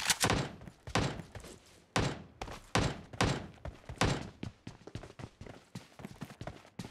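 Quick footsteps thud on the ground.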